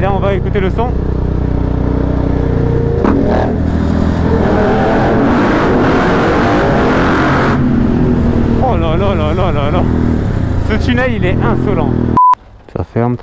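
A motorcycle engine drones steadily close by.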